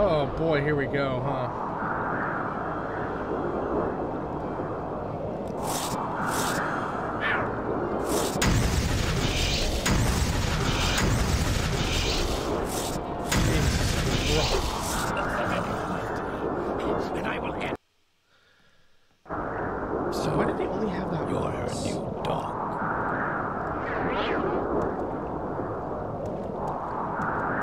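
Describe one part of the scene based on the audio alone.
A young man talks casually and close into a microphone.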